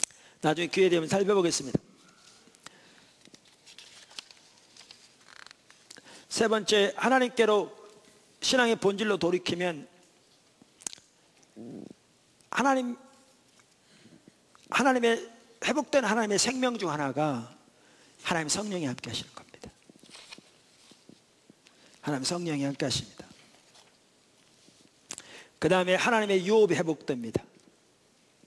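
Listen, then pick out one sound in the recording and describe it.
An elderly man speaks slowly and calmly through a microphone, in bursts with pauses, in a large echoing hall.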